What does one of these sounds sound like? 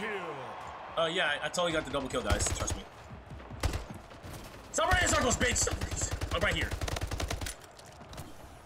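A young man talks into a nearby microphone.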